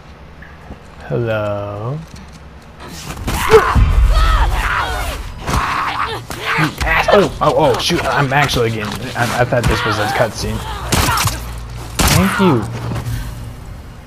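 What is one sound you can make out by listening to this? A young man exclaims excitedly into a microphone.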